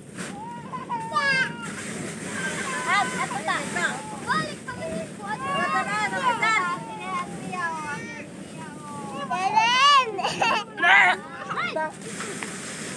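A young boy laughs and giggles close by.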